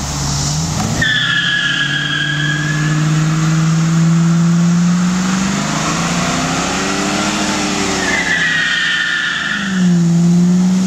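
Tyres squeal loudly as they spin on the road.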